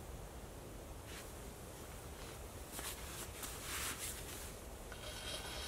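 A knife scrapes and shaves wood in short strokes.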